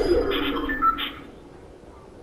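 A pickaxe swooshes through the air.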